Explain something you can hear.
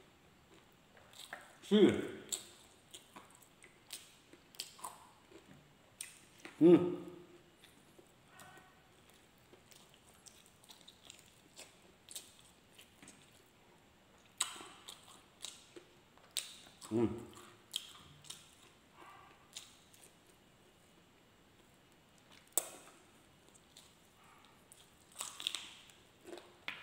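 A man chews and smacks his lips loudly close by.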